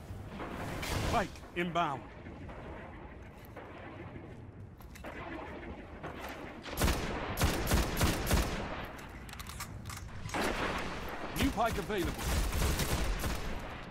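Sniper rifle shots crack loudly with echoing booms.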